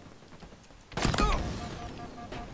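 Gunshots crack close by.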